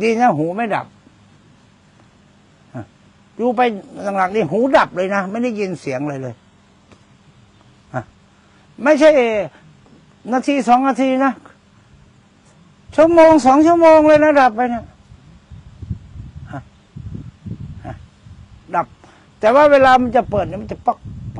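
An elderly man speaks calmly and with animation into a nearby microphone, with pauses.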